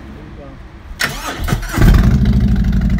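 A motorcycle engine cranks and starts.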